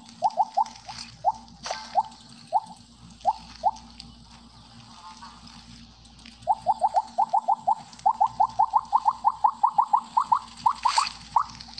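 Quick rising blips sound in bursts as a game snake eats glowing pellets.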